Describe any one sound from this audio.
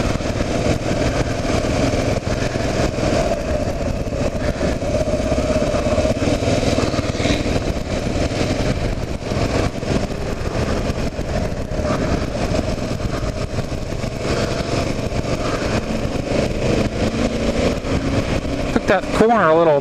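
Wind rushes loudly past the microphone, outdoors while moving.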